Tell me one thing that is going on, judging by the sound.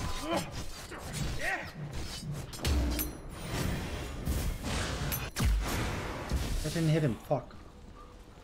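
A young man talks with animation into a microphone.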